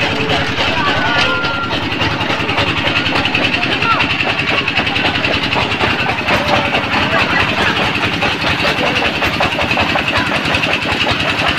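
A small ride's metal cars creak and rattle as they swing around.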